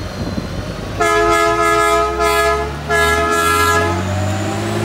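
A horn on a railcar mover sounds several short blasts.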